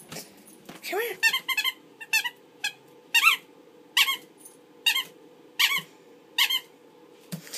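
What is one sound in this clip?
A squeaky rubber toy squeaks in short repeated bursts.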